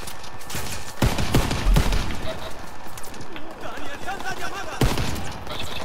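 Rifle shots crack loudly in short bursts.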